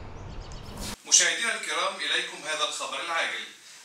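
A man reads the news calmly through a television speaker.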